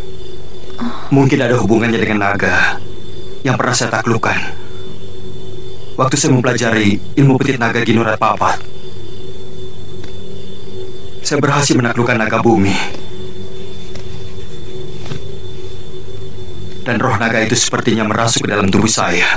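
A man speaks quietly and tenderly, close by.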